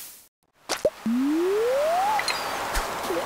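A video game plays a rising reeling tone.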